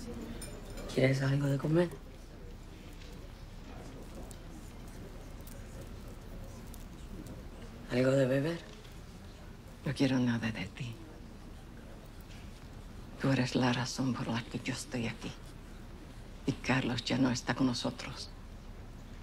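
A woman speaks quietly and calmly nearby, in short phrases with pauses.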